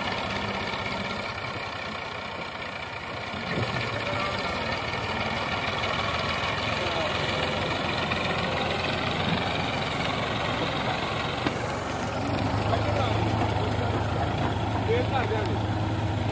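A tractor engine chugs steadily, growing louder as it comes close.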